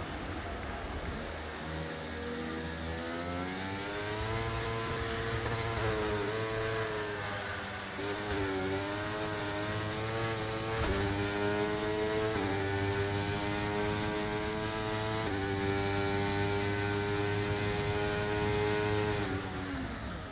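A racing car engine roars at high revs, climbing through the gears with sharp shifts.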